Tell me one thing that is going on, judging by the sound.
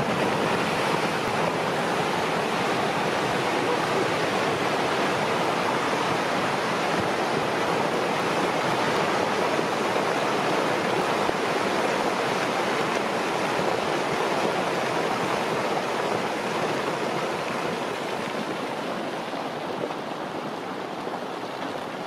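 An avalanche of snow roars down a mountainside with a steady, heavy rushing that slowly fades.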